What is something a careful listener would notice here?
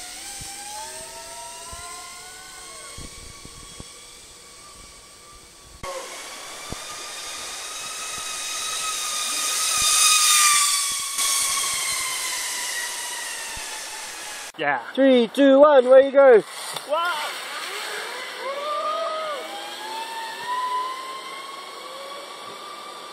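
A pulley whirs along a steel cable, its whine rising and falling in pitch.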